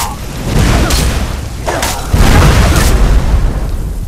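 Fire roars out in a burst of flame.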